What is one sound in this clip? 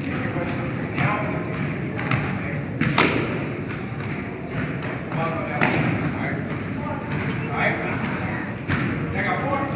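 A basketball bounces on a hard floor in a large echoing gym.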